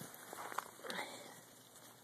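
A sheep munches and rustles hay.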